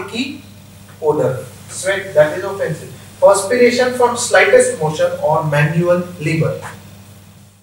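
A young man speaks calmly into a microphone in a slightly echoing room.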